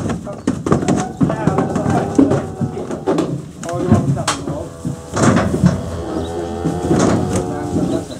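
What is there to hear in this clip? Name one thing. Cattle hooves clatter on a metal trailer ramp.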